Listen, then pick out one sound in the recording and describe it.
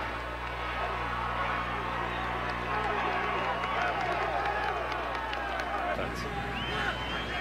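A large stadium crowd cheers loudly.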